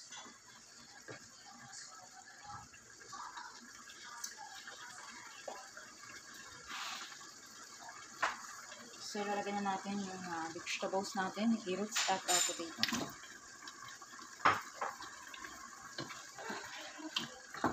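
A wooden spoon scrapes and knocks inside a pot.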